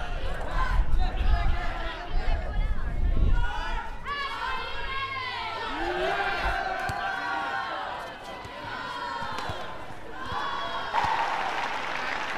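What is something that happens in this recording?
Badminton rackets strike a shuttlecock in a large indoor arena.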